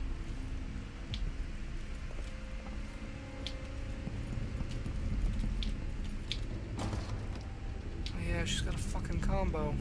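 Footsteps tread on a wooden floor indoors.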